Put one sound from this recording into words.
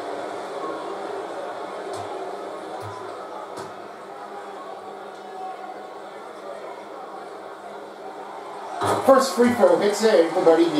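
A crowd murmurs steadily in a large echoing arena.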